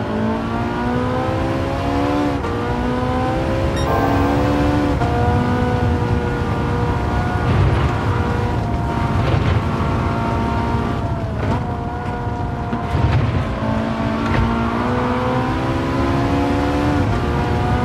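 A racing car engine roars and revs up through the gears.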